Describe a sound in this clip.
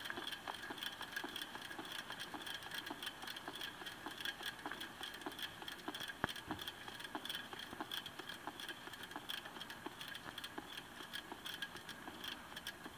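A spinning bicycle wheel whirs and ticks rapidly and steadily.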